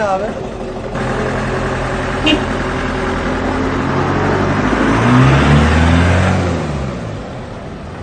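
A van engine rumbles as the vehicle pulls away.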